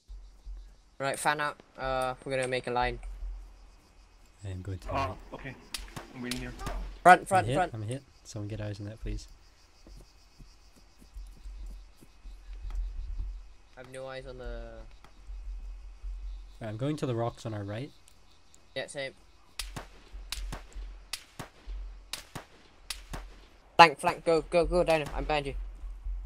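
Footsteps rustle through dry grass and leaves.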